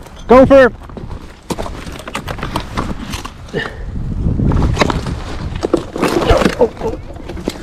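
Footsteps crunch on dry debris.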